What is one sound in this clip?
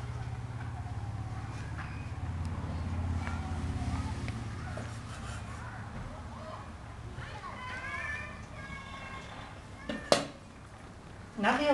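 A knife taps on a wooden cutting board.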